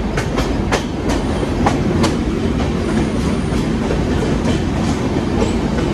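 A train's rumble grows louder and echoes inside a tunnel.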